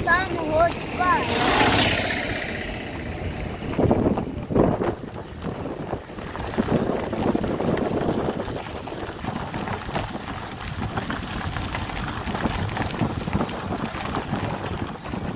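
A vehicle rumbles and rattles steadily as it moves along.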